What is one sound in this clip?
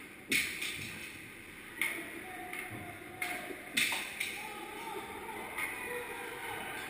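Skate blades scrape across the ice in a large echoing rink.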